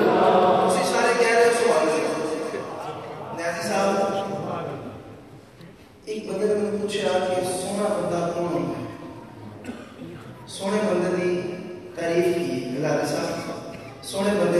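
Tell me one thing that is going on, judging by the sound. A man sings through a microphone and loudspeakers in long, melodic phrases.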